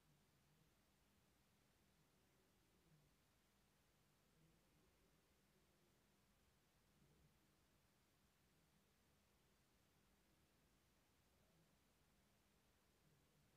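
Soft pieces of sweet are set down on a glass plate with faint taps.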